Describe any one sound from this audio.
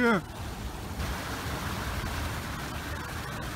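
A stream rushes over rocks nearby.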